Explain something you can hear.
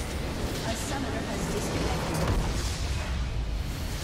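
A large structure explodes with a deep, rumbling boom.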